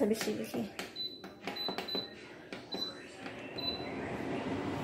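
An air cooler beeps as its buttons are pressed.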